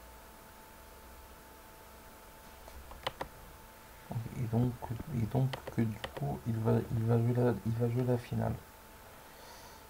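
Short clicks sound as chess pieces are moved in a computer game.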